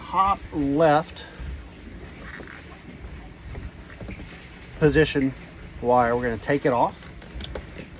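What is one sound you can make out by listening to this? A middle-aged man talks close up, calmly and in short bursts.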